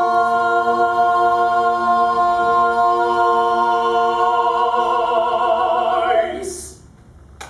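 A group of men and women sing a sustained chord together, ringing out in a hall.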